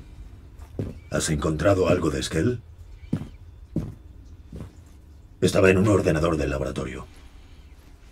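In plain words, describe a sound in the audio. A man speaks calmly, with a slight echo.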